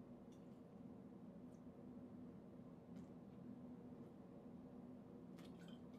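A man gulps water from a bottle.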